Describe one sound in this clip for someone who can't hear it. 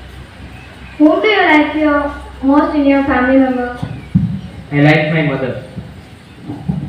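A young woman speaks calmly into a microphone, heard through a loudspeaker.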